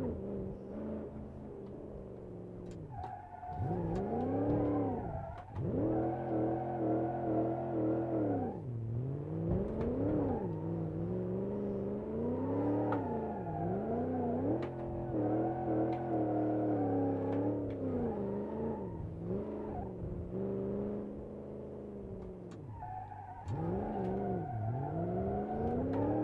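A car engine revs up and down loudly as gears change.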